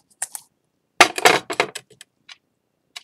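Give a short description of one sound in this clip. A metal bowl clatters down onto a hard surface.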